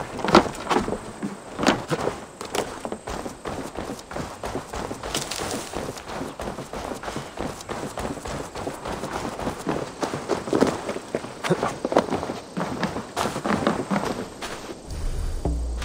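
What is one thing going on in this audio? Soft footsteps crunch on dirt and creak on wooden boards.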